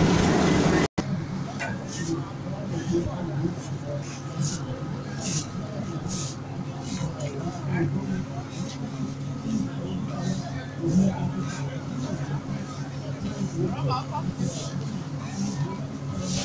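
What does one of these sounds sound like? A broom scrapes and sweeps across a rough road surface in repeated strokes.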